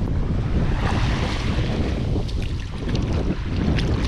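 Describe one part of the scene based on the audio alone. Small waves lap gently on a sandy shore.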